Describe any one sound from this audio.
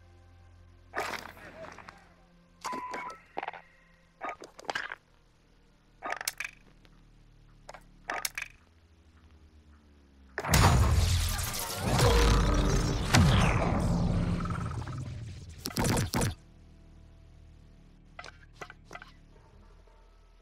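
Short menu clicks and whooshes sound as options are chosen.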